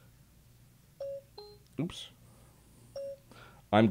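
A phone gives short electronic beeps.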